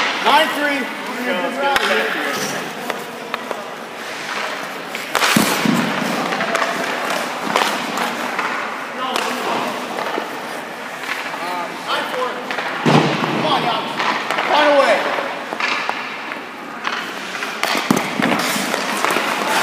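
A man talks casually nearby in a large echoing rink.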